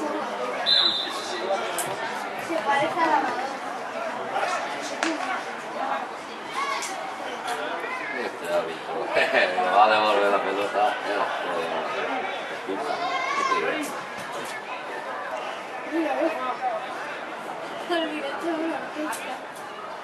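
Teenage boys shout to each other outdoors.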